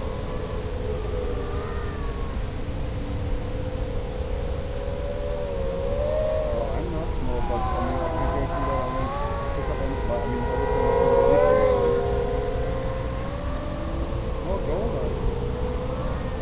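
A small drone's motors whine, rising and falling in pitch as it speeds and turns.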